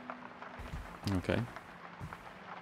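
A man speaks a short greeting.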